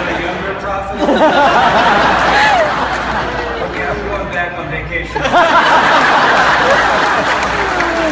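A crowd laughs loudly.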